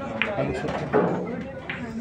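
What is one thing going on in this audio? Pool balls clack against each other.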